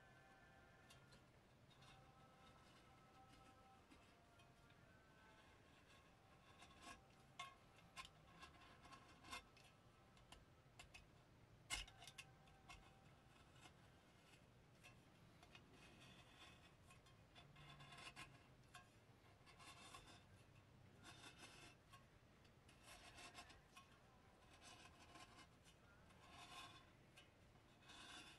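Small plastic and metal parts click and rattle as they are handled up close.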